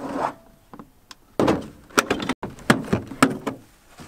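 Plastic latches on a storage box snap open.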